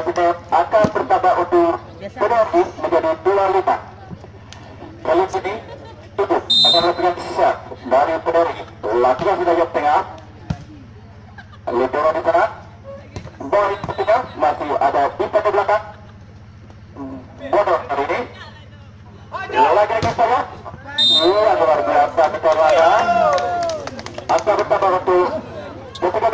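Young men shout and call out loudly outdoors.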